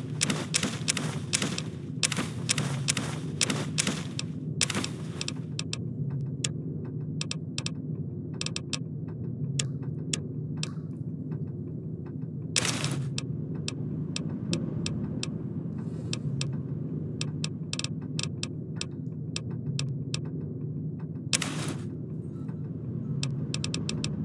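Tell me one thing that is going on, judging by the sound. Short menu clicks tick in quick bursts.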